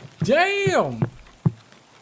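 A young man exclaims with a drawn-out cry close to a microphone.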